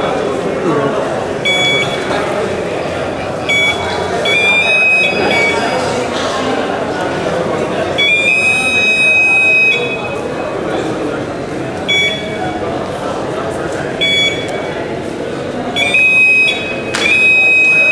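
A large crowd chatters and murmurs in an echoing hall.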